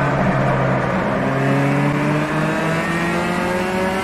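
A four-cylinder touring car engine climbs in pitch under acceleration.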